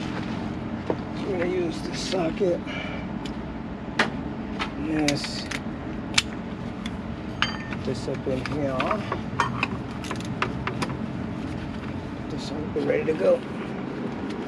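A man talks calmly, close by.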